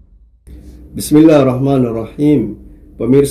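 A man speaks calmly and clearly into a microphone close by.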